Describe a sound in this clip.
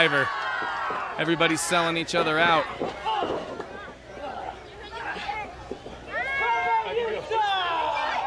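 A crowd of children and adults cheers and shouts outdoors.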